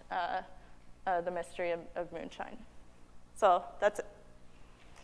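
A young woman speaks calmly into a microphone in a large hall.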